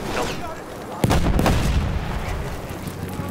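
A heavy explosion booms close by.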